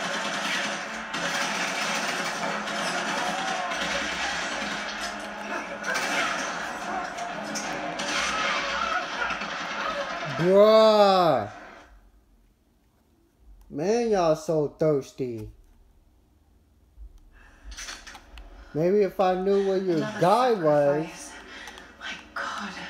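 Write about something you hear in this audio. Video game music and sound effects play from a television speaker.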